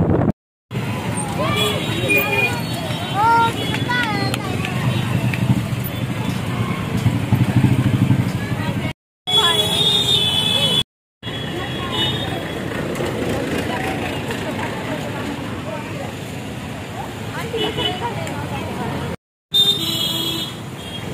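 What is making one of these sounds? Motorbike engines rumble in busy street traffic.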